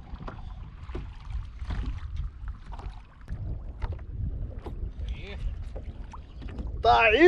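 Wind rumbles across the open water.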